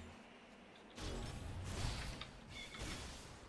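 A burst of fire whooshes.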